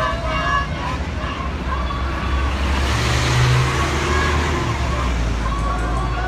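A bus engine rumbles loudly nearby.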